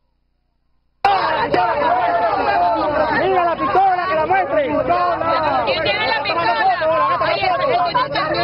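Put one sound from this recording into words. A crowd of men and women talk and shout excitedly close by.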